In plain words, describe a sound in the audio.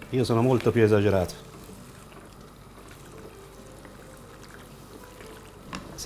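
A wooden spoon stirs and scrapes through thick food in a pan.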